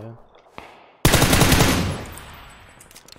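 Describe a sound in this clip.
A rifle fires a single loud shot with a rolling echo.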